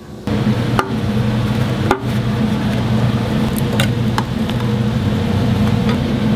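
A metal lid pops off a paint can.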